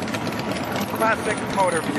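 A motorcycle engine rumbles close by.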